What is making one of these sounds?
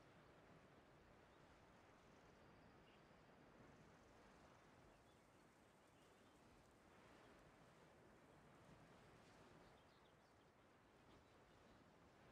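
Wind rushes steadily past a gliding figure.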